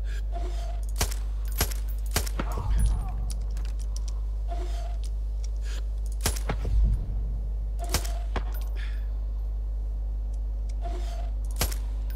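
Rifle shots crack sharply every few seconds.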